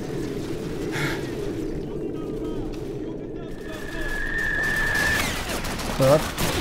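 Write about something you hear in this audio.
A rifle fires sharp shots up close.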